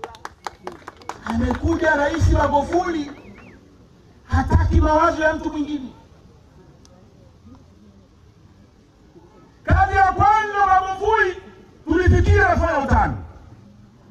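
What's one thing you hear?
A man speaks loudly into a microphone over a loudspeaker outdoors, in bursts with pauses.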